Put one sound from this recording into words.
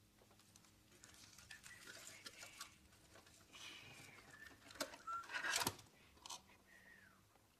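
A man crinkles and tears a paper wrapper.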